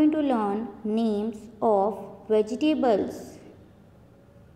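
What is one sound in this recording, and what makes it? A young woman speaks clearly and with animation, as if teaching, close to the microphone.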